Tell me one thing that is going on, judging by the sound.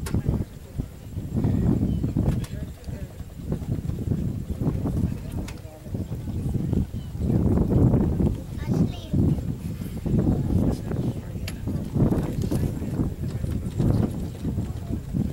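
A man reads aloud outdoors, heard from nearby.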